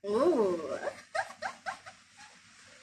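A young woman laughs nearby.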